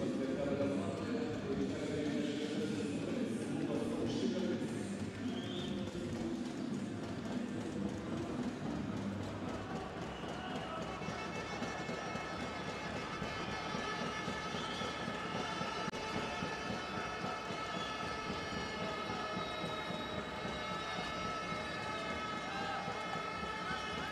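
A large indoor crowd murmurs and cheers in an echoing hall.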